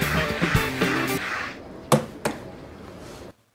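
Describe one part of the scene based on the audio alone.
Footsteps tap on hard stone.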